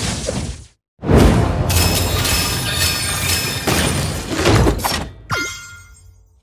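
A video game explosion bursts loudly.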